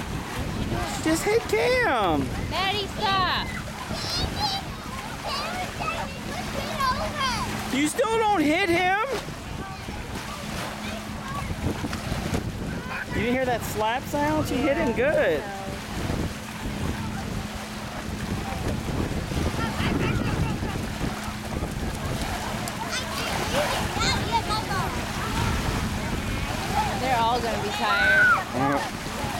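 Small waves lap steadily outdoors.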